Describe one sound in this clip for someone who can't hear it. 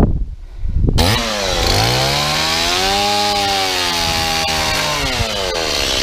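A power drill whirs, speeding up and slowing down.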